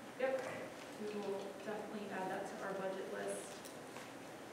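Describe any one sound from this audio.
An adult speaks calmly into a microphone in a large echoing room.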